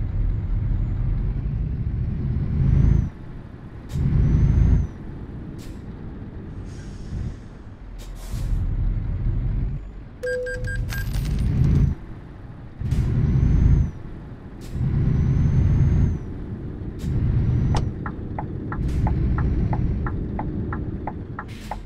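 A truck engine rumbles low and surges in bursts as it accelerates.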